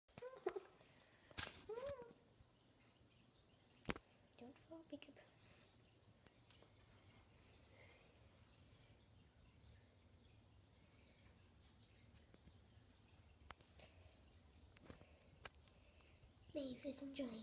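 A young girl talks softly close by.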